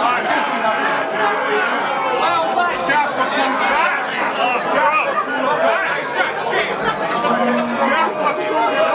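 A crowd murmurs and cheers in an echoing room.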